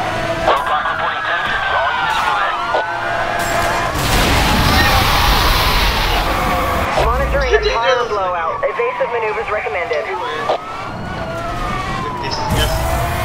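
A sports car engine roars at speed.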